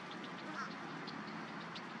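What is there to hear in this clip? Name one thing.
An osprey calls with short, high chirps.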